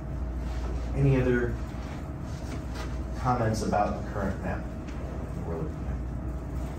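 A man speaks briefly and calmly in a quiet room, heard from across the room.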